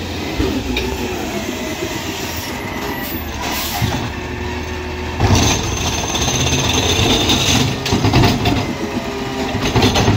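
A hydraulic arm whines as it lifts a bin.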